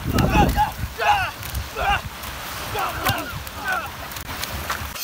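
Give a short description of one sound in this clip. A young man shouts in short bursts close by.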